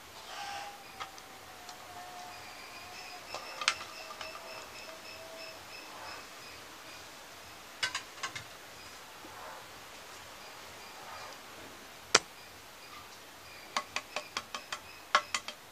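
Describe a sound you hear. Eggs clink against a clay bowl.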